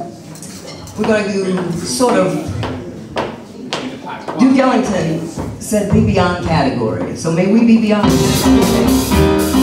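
A woman sings into a microphone through loudspeakers.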